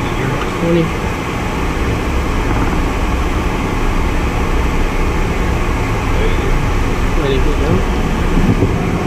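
A small plane's engine drones steadily inside the cockpit.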